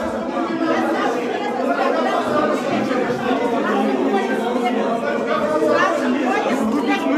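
A crowd of men and women shout and argue loudly at close range.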